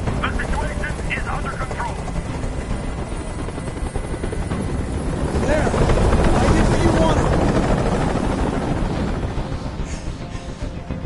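A helicopter's rotor thumps and roars loudly nearby.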